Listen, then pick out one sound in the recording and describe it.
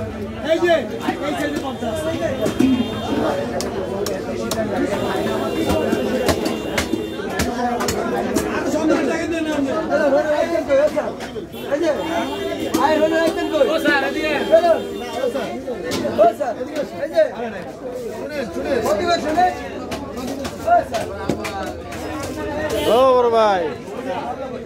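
Many men and women talk and call out all around in a busy crowd.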